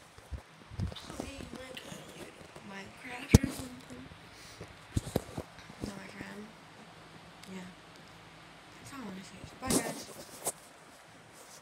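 A young girl talks quietly close by.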